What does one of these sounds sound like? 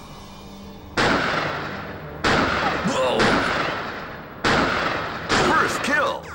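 A rifle fires loud shots, one after another, with echoing booms.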